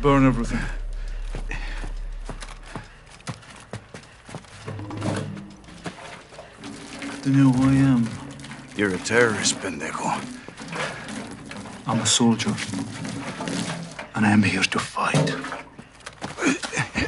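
A man speaks in a low, threatening voice up close.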